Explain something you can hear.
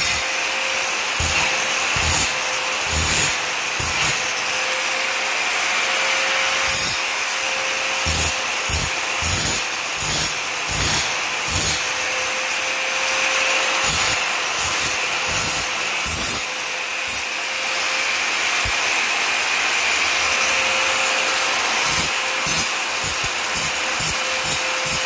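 An angle grinder whines steadily at high speed.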